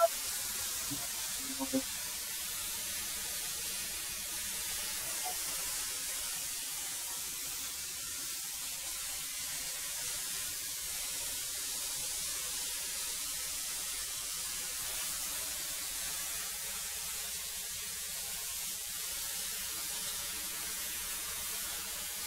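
A thickness planer runs with a loud, steady whine.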